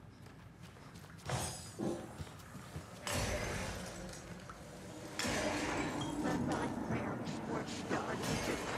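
Footsteps thud on creaking wooden stairs.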